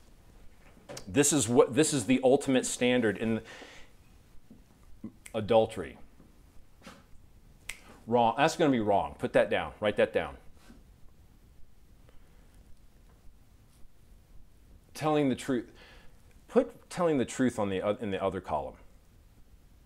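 A middle-aged man lectures with animation through a clip-on microphone.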